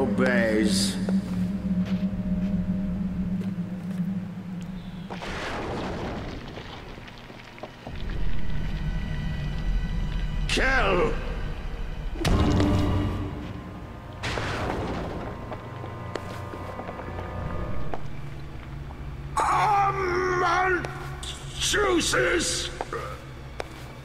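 A man speaks slowly and menacingly, close by.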